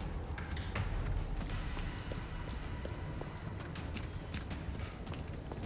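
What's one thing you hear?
Footsteps tread on a hard stone floor.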